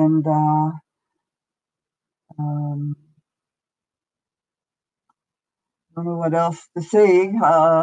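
An elderly woman speaks calmly in short phrases, heard through an online call.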